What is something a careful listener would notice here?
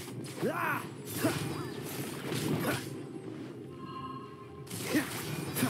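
Magic attacks whoosh and crackle in quick bursts.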